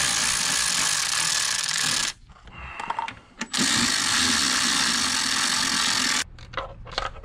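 A cordless ratchet whirs loudly in long bursts.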